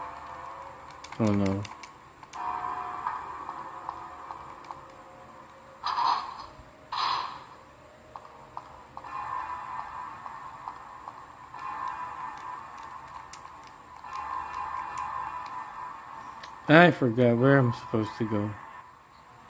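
Music plays softly through a small speaker.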